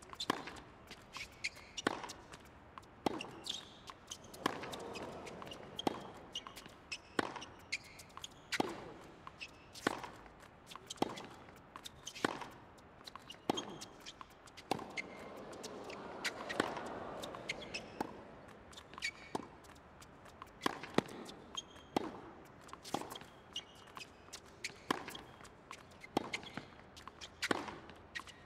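Tennis balls are struck hard with rackets in a quick back-and-forth rally.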